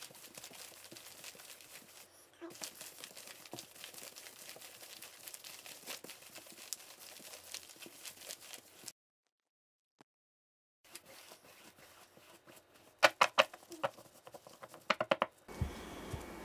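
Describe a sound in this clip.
Cards rustle and slide softly as they are shuffled.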